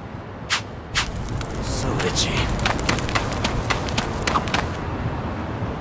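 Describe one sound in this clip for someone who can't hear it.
Footsteps run quickly over hard ground.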